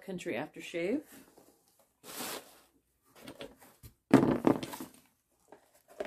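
Cardboard rustles and thumps as items are pulled from a box.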